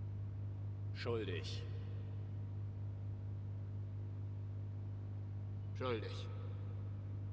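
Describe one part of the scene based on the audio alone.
A man speaks briefly in a low voice, close by.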